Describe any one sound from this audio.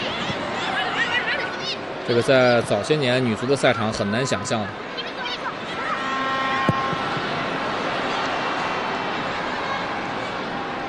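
A large crowd murmurs and cheers in a big open stadium.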